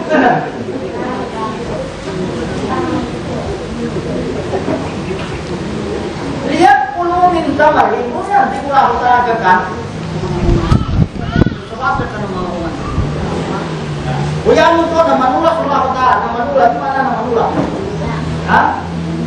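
A man speaks with animation through a microphone to an audience.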